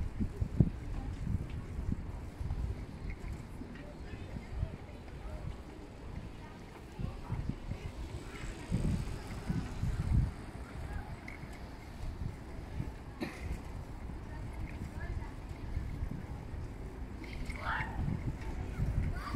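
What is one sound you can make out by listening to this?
Bicycle tyres roll on asphalt.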